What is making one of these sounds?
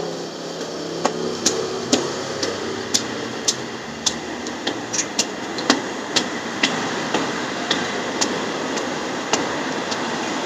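Footsteps tap on stone stairs.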